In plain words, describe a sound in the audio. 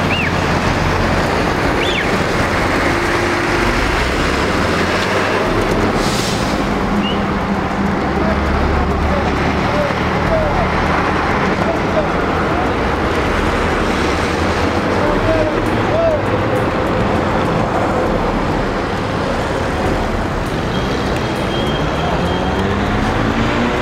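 A small truck's engine rumbles as it drives slowly.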